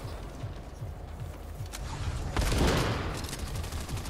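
A wooden wall breaks apart with a splintering crash.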